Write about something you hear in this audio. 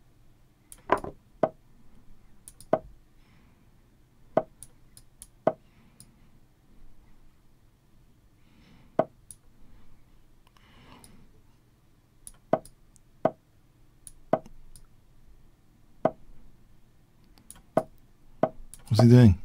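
Chess pieces click sharply as moves are made.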